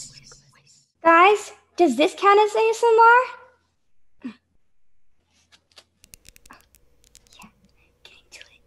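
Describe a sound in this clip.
A puppeteer speaks in a high, silly cartoon voice over an online call.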